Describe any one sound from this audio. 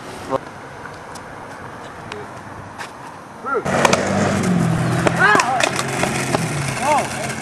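A skateboard clatters and smacks against the pavement.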